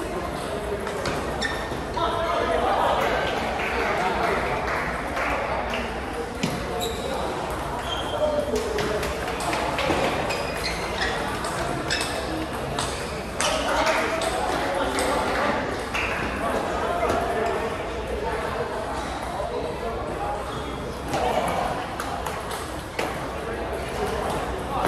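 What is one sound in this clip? Many people talk in a large echoing hall.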